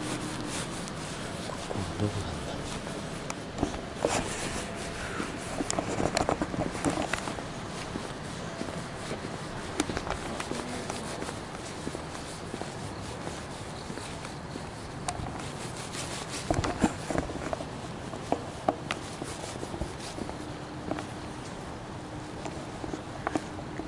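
Clothing rustles and brushes against the microphone.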